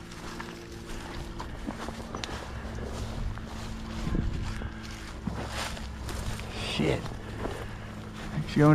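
Dry grass rustles and crunches underfoot as someone walks.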